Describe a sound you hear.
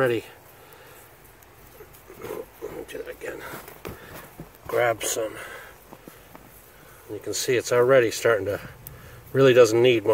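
A gloved hand scrapes and crumbles dry soil.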